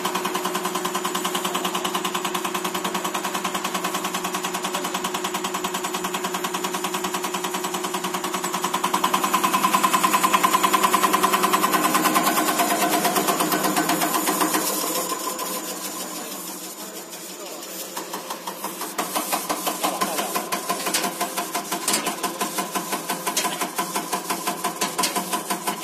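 A test machine's motor hums steadily with a rapid pulsing beat.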